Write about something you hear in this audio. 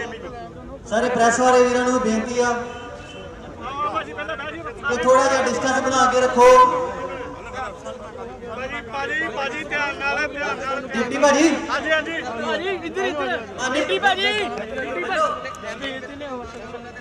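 A man speaks loudly with agitation, close by.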